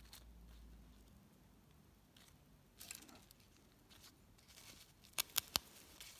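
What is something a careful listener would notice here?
Metal tweezers tap and click against fabric.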